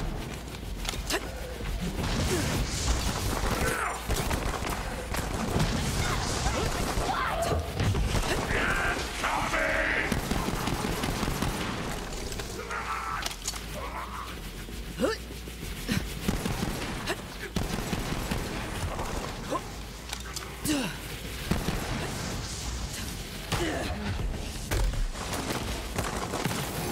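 Rapid gunfire blasts out in quick bursts.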